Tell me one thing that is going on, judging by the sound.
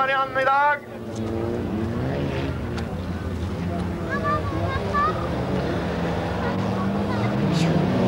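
Racing car engines roar and rev outdoors.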